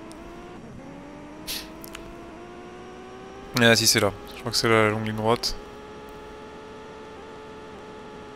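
A racing car engine hums steadily at high revs.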